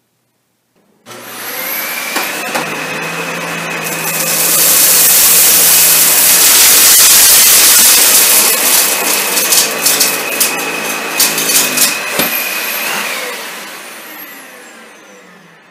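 A vacuum cleaner starts with a loud whirring roar, then winds down.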